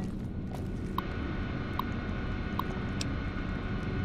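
A computer terminal beeps with short electronic tones.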